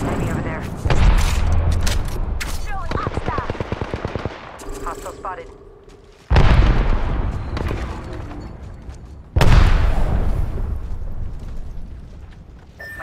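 A rifle fires loud booming shots that echo and fade away.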